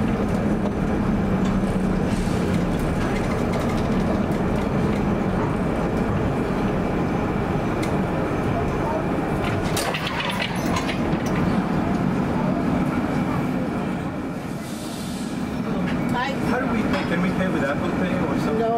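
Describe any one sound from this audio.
A streetcar rumbles steadily along its tracks through a city street.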